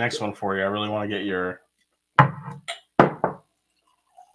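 A mug clinks on a table.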